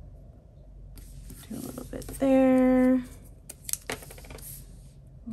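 Paper rustles and crinkles up close.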